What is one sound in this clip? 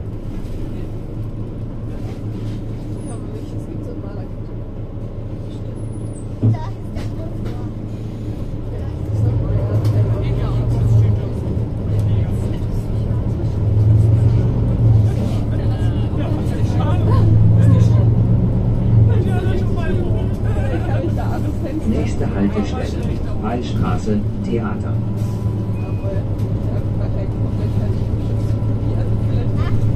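A bus engine idles with a low hum, then rumbles louder as the bus pulls away and drives on.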